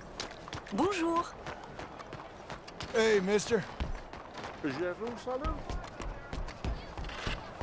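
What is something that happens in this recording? Footsteps tap on stone pavement at a steady walking pace.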